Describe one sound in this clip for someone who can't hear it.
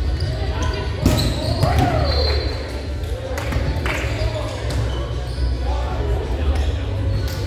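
Several young adults call out to each other across the court.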